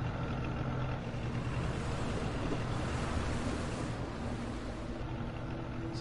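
A boat motor hums steadily over water.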